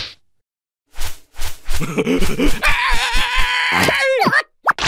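A cartoon creature laughs loudly in a squeaky voice.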